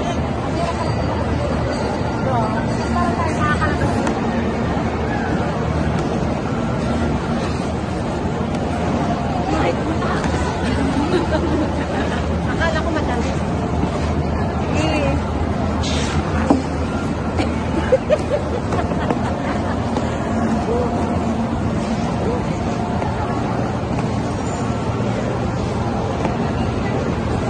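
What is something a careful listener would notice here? A young woman talks close by, speaking casually.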